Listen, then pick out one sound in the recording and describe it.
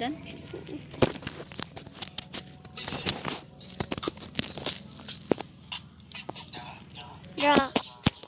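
A phone microphone rubs and bumps against clothing.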